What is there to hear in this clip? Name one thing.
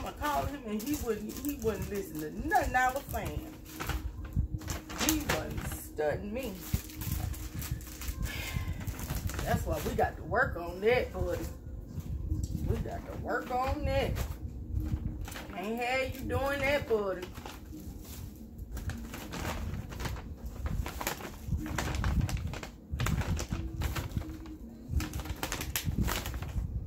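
Paper bags rustle and crinkle as items are put in.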